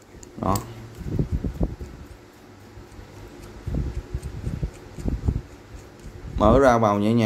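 A metal wrench clicks and knocks softly as it is handled.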